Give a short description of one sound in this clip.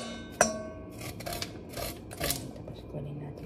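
A knife scrapes kernels off a corn cob with short rasping strokes.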